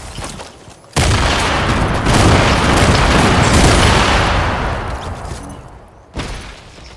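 A loud explosion booms and slowly rumbles away.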